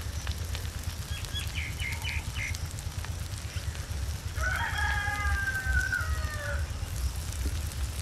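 Slices of bread are set down softly on a metal pan.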